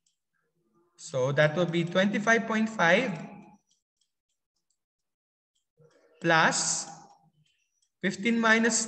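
A man explains calmly, heard close through a microphone.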